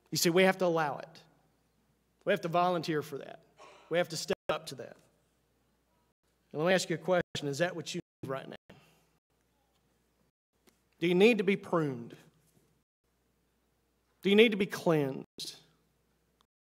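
A man speaks calmly and with animation into a microphone.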